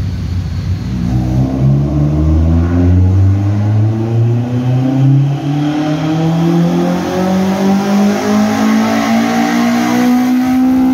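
A car engine revs hard, its pitch climbing steadily.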